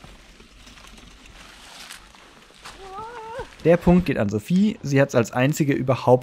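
Bicycle tyres roll over dry leaves and dirt.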